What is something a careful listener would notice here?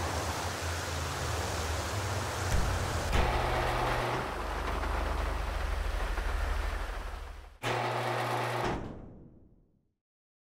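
A sports car engine rumbles and revs.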